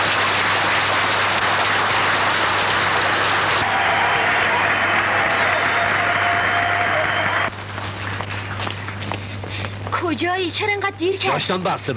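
A crowd claps hands.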